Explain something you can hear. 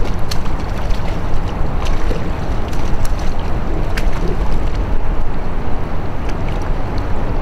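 Small waves lap and splash against a kayak.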